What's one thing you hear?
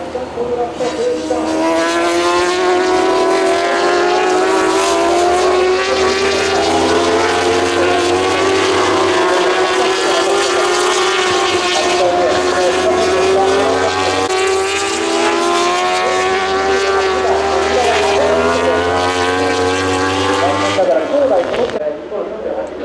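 Superbikes race past on a circuit, their engines howling as they accelerate through the gears.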